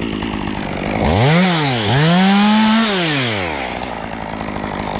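A chainsaw revs up and down in quick bursts as it cuts through a branch.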